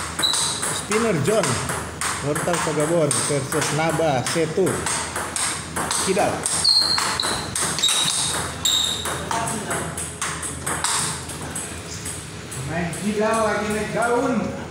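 A table tennis ball clicks back and forth between paddles and the table in a rapid rally.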